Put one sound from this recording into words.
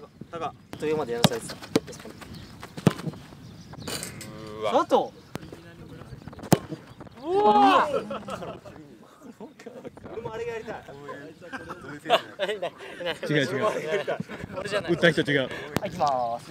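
A football is kicked hard outdoors with sharp thuds.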